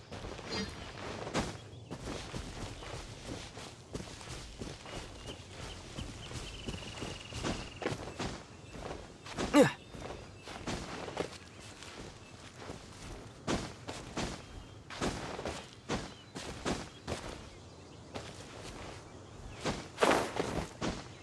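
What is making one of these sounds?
A game character scrambles and leaps up rock with short thumps and scuffs.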